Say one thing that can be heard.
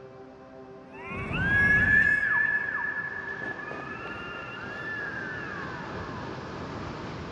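A large bird of prey screeches loudly overhead.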